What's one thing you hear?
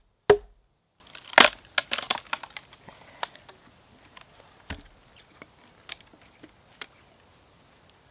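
A hand axe chops into a cedar log, splitting and splintering the wood.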